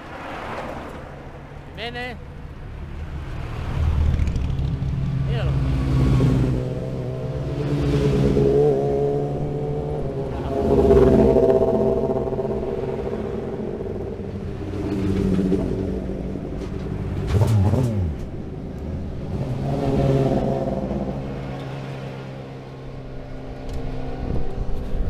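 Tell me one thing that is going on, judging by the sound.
Racing car engines roar loudly and pass close by.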